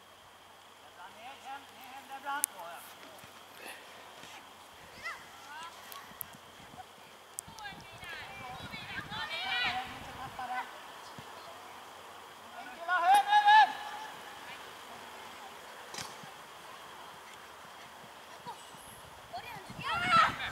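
Young players shout to each other across an open outdoor field.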